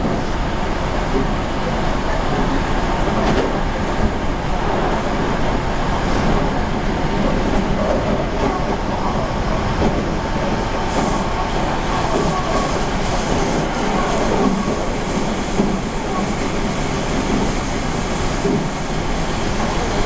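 A train rumbles steadily along the tracks from inside the cab.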